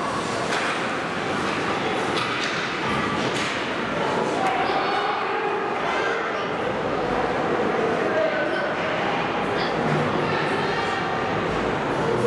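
Spectators chatter and call out in the echoing rink.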